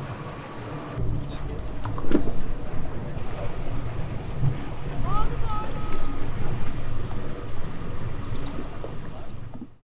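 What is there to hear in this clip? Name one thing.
A boat engine idles with a low, steady rumble.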